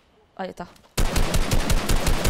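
Rapid gunshots ring out in a quick burst.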